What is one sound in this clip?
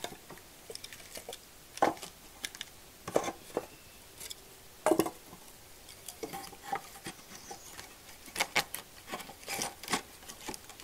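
Pieces of firewood knock and clatter as they are stacked onto a wooden rack.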